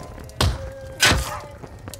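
A man shouts with strain, close by.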